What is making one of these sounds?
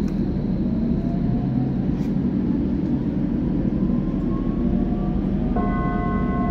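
A train's motor whines, rising in pitch as it speeds up.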